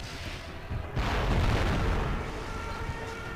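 A rifle shot booms and echoes away.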